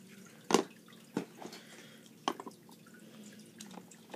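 A plastic toy block clicks onto another block.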